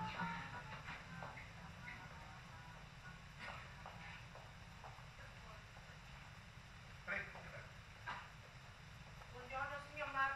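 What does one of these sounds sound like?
A woman speaks clearly.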